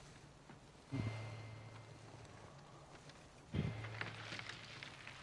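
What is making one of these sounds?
A man grunts and speaks in a rough voice, close by.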